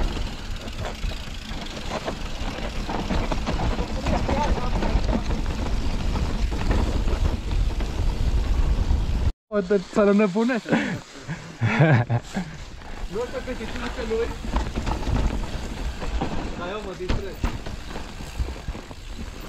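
A bicycle chain and frame rattle over bumps.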